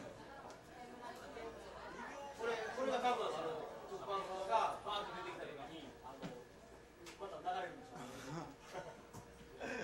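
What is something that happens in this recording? A crowd of young men and women chatters in a lively room.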